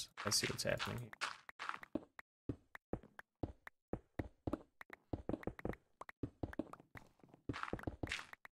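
A pickaxe chips rapidly at stone, with quick crunching knocks.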